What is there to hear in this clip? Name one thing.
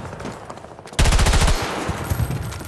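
A rifle fires a rapid burst close by.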